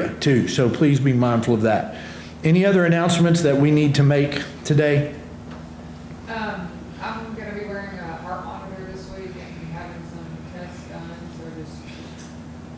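A man speaks calmly through a microphone in a large, echoing room.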